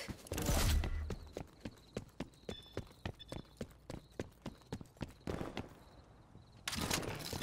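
Footsteps patter quickly and evenly.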